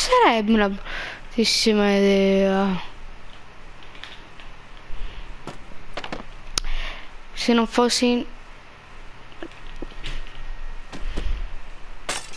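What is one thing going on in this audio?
Wooden crates knock and clatter as they are dropped onto a floor.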